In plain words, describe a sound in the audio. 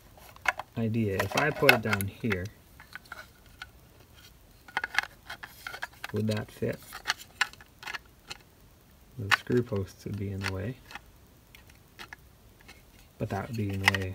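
Hard plastic parts click and knock as they are handled and pulled apart.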